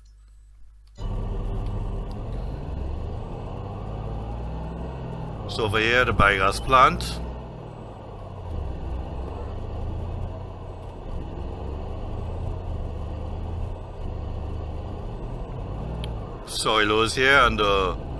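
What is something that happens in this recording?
A pickup truck engine hums steadily as it drives along a road.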